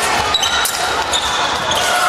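Fencing blades clink against each other.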